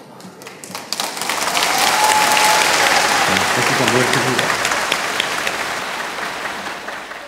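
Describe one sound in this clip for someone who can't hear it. A crowd laughs and cheers loudly.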